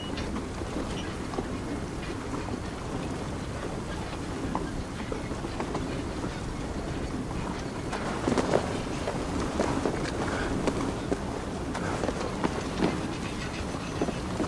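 A wooden torch crackles as it burns.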